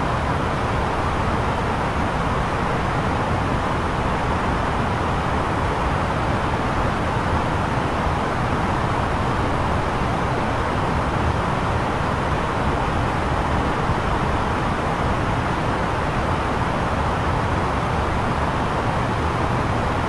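Jet engines and rushing air roar steadily in flight.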